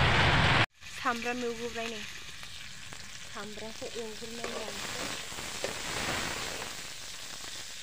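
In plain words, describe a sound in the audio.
A metal spatula scrapes a pan.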